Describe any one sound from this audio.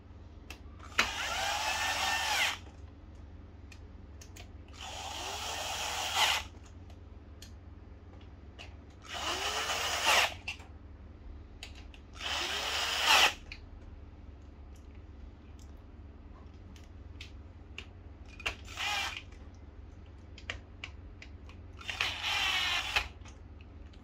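A cordless drill whirs in short bursts, driving screws.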